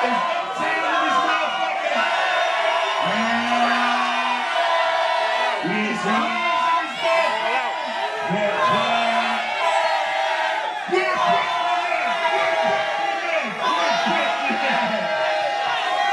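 Loud music with a heavy beat plays over loudspeakers in a large hall.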